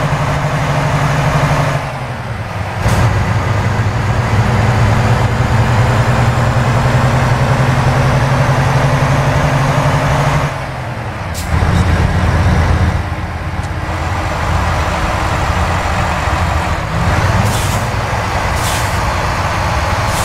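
A truck engine drones steadily, its pitch shifting as gears change.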